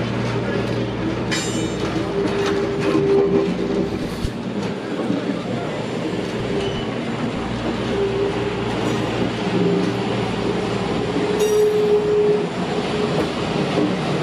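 A train rolls slowly along the tracks with a steady low rumble.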